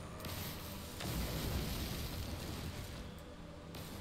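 A mining laser hums and crackles as it cuts into rock.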